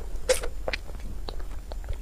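A young woman gulps a drink close to a microphone.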